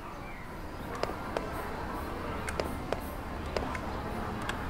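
Light footsteps tap on a hard floor.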